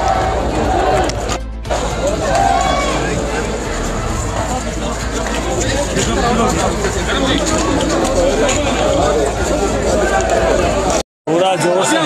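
A crowd chants loudly outdoors.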